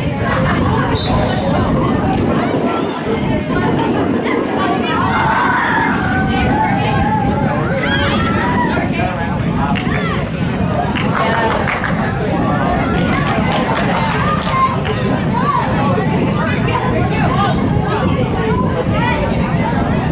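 Spectators nearby talk and call out with animation.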